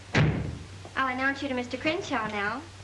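A young woman speaks clearly and brightly nearby.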